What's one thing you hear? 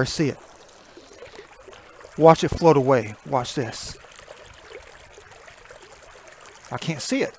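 Shallow water trickles gently over pebbles.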